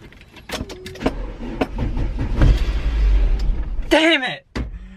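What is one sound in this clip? A van's starter motor cranks the engine.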